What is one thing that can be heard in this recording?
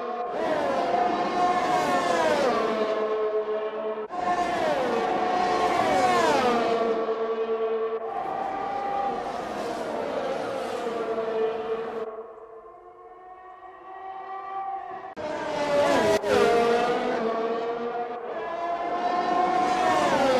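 Racing cars roar past close by.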